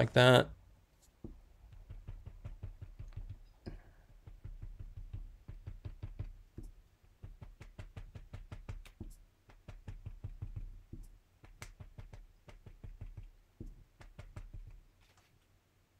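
A sponge dabs softly and rapidly on paper.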